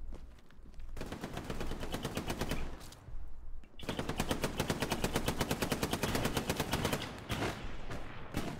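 A machine gun fires in long, rapid bursts close by.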